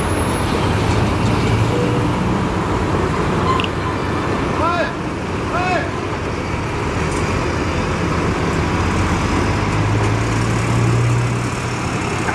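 Rocks rattle and tumble from a tipping dump truck.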